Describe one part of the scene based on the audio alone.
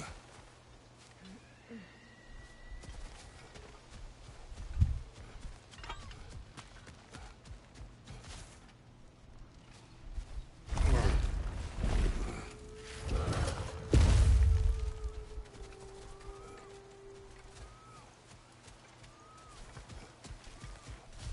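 Heavy footsteps tread over grass and dirt.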